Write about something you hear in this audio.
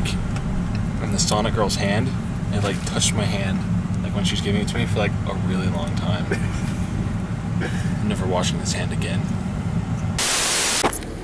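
A young man talks casually up close.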